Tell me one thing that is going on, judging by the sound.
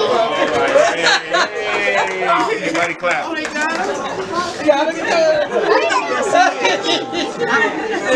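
Women laugh and squeal with joy as they hug.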